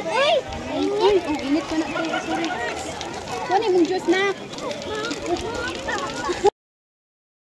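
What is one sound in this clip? Children talk and chatter excitedly close by.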